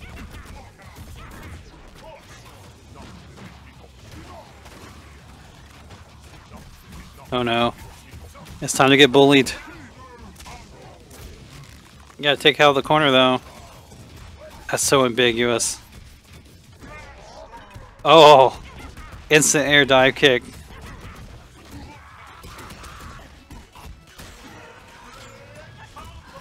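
Video game punches and slashes land with heavy thuds.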